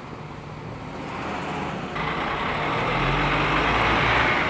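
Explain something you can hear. Buses drive past along a busy street.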